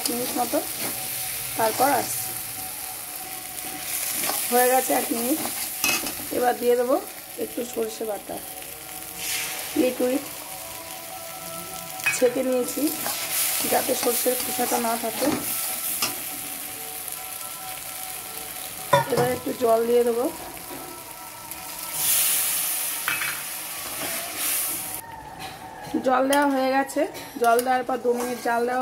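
A spatula scrapes and stirs food in a metal pan.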